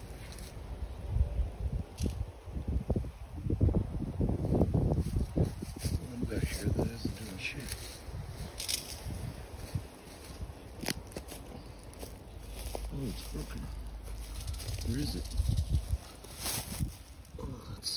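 Footsteps rustle and crunch through dry grass and leaves.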